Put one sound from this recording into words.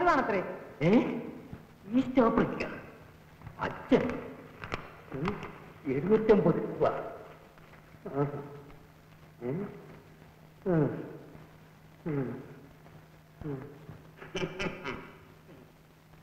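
An elderly man speaks slowly and with feeling, close by.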